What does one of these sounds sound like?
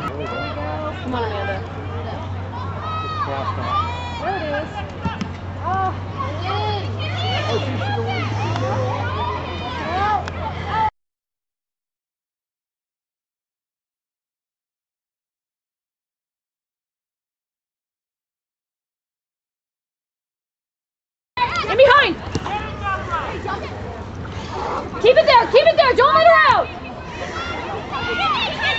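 Young women shout to each other outdoors.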